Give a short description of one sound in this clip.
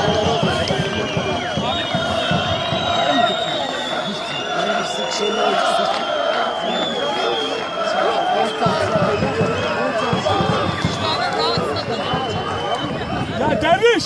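Men nearby talk and shout among themselves.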